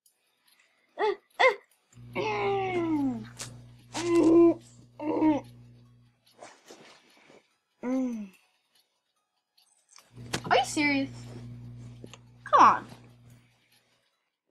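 A young boy talks with animation, close to a microphone.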